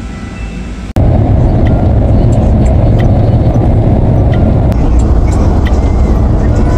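A car drives along a road with a low steady rumble.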